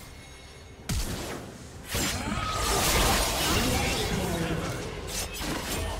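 Video game spell effects whoosh and crackle.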